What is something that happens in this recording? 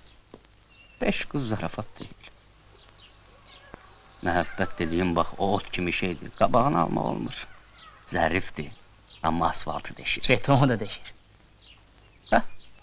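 A man talks with animation nearby, pausing now and then.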